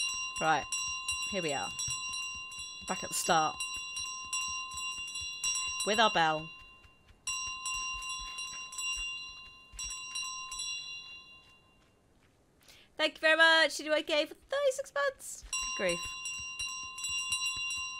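A small handbell rings and jingles.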